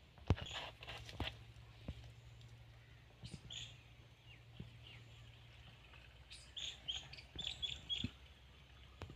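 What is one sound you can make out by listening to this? A plastic bottle knocks against a plastic tank.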